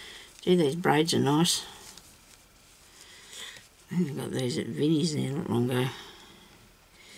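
Sticky tape crinkles softly as fingers press it down.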